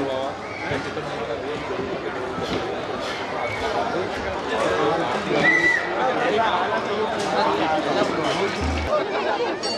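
A large crowd murmurs and chatters in a big hall.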